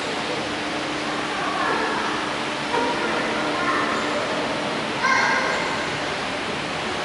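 A man chants through a loudspeaker in a large echoing hall.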